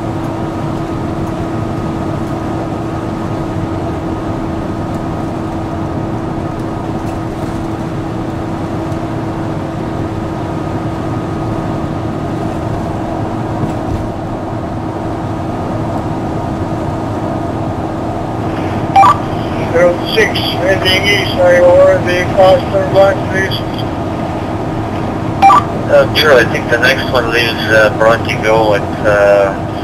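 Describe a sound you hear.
A car's engine and tyres hum steadily on the road from inside the car.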